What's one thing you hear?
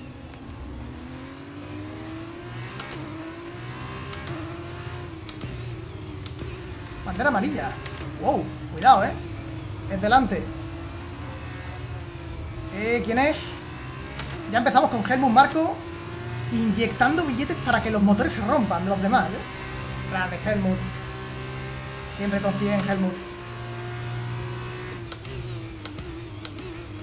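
A racing car engine whines and revs up and down throughout.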